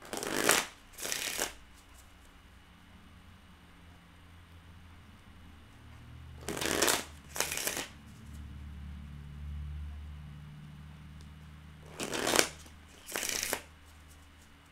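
A woman shuffles cards with quick riffling bursts.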